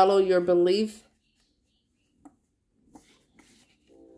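Stiff paper cards rustle softly as they are shuffled by hand.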